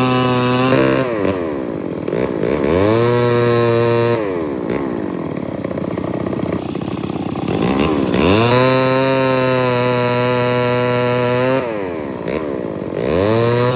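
A log splitter's engine runs loudly, dropping in pitch under load and revving back up.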